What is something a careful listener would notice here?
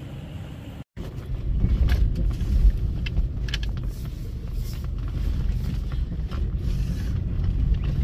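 A car engine rumbles loudly.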